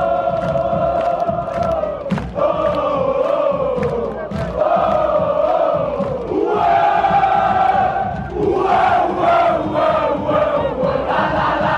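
A large crowd of fans sings a chant loudly in unison outdoors.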